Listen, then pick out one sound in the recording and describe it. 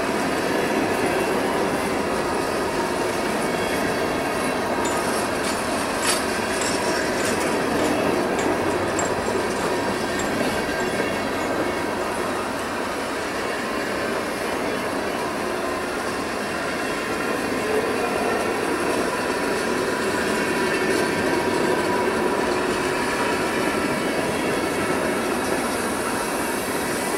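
Steel wheels clatter and squeal on the rails.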